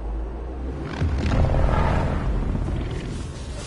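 An elderly man speaks in a low, menacing voice.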